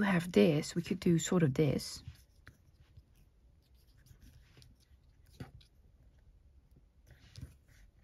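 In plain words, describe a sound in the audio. Fingers slide and tap lightly on a card.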